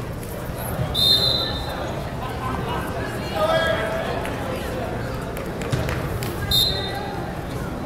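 A referee's whistle blows sharply in a large echoing gym.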